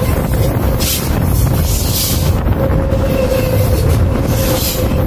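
A train rumbles loudly close overhead, its wheels clattering on the rails.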